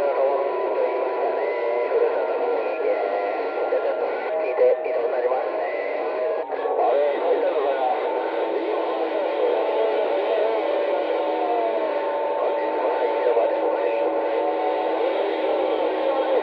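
A radio receiver hisses and crackles with static, with muffled, warbling signals.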